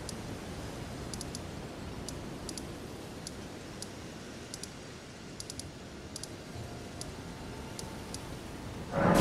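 Soft, high ticks sound now and then as a game cursor glides across a map.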